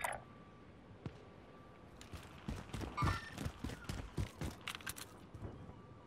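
Gunshots from a video game ring out in sharp bursts.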